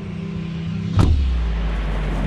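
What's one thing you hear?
A sudden whoosh sounds as a figure leaps into the air.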